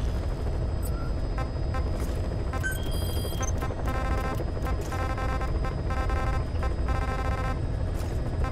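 Short electronic beeps tick quickly as menu items are scrolled.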